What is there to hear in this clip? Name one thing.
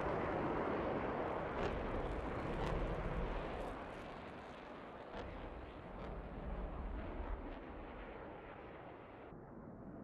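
Flares pop and crackle as they are released.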